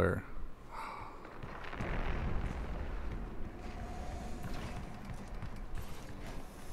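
Heavy footsteps thud steadily on a metal floor.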